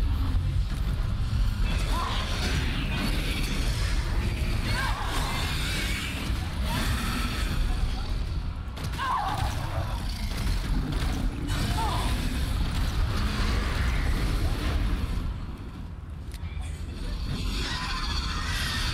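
A young man speaks excitedly close to a microphone.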